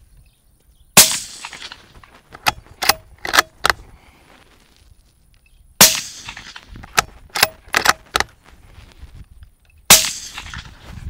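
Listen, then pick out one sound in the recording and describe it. An air rifle fires with a sharp crack.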